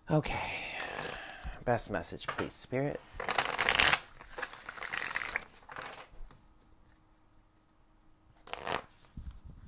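Playing cards are shuffled by hand with soft riffling and rustling.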